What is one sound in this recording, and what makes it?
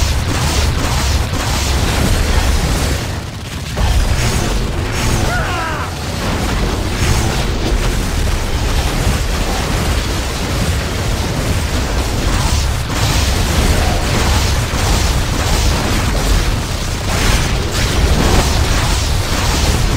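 Fiery explosions boom and crackle in quick bursts.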